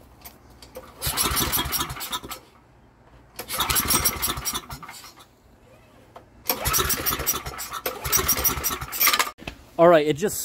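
A pull cord whirs as it is yanked hard on a small engine.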